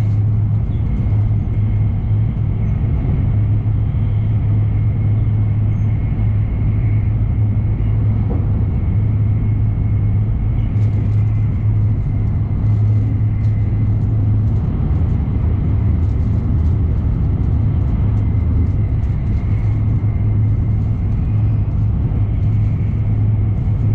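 A train hums and rumbles steadily at speed, heard from inside.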